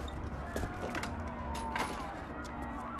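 Metal clicks and rattles as a man works at a door lock.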